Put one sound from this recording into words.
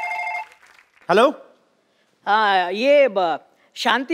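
A man talks on a phone, close by.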